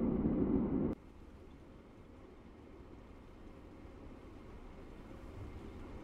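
A distant train approaches, growing slowly louder.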